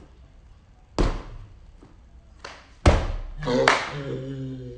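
Bare feet thump onto a mat.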